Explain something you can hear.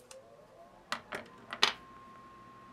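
Metal clicks as a part is handled.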